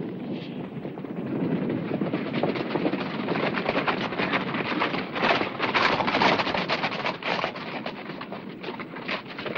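Several horses gallop on a dirt track, their hooves pounding.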